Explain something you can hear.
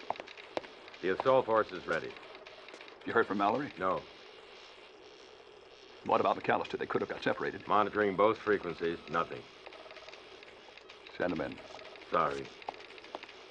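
Middle-aged men talk in low, tense voices nearby.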